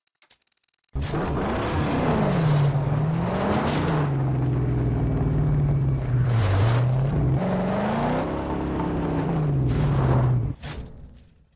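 A car engine roars and revs as the car drives over dirt.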